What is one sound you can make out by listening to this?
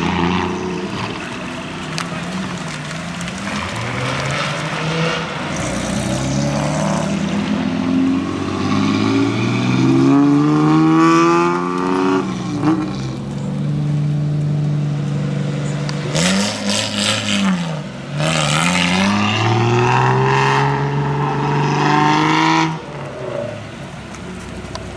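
Car engines rumble and rev loudly through a low exhaust, rising and falling in pitch as they pass close by.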